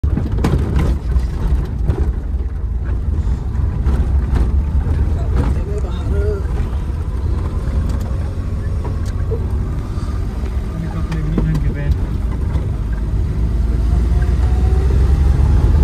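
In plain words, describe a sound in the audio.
A car rattles and knocks over a bumpy road.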